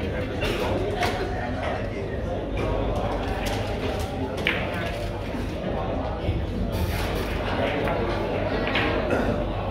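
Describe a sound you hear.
A cue tip strikes a billiard ball.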